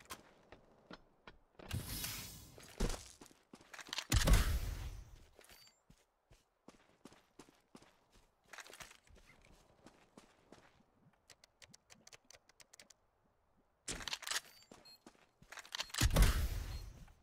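Footsteps crunch over gravel.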